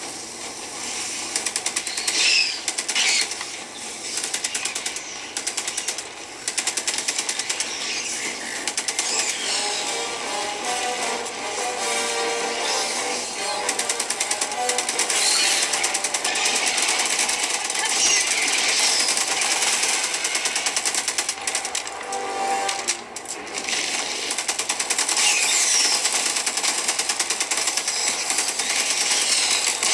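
Rapid gunfire rattles from a small handheld speaker.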